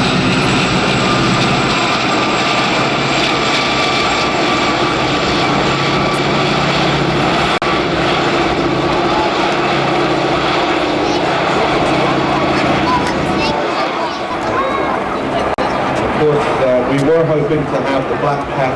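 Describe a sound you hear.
Propeller plane engines drone overhead.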